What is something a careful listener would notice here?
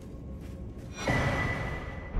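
A soft chime sounds as an item is picked up.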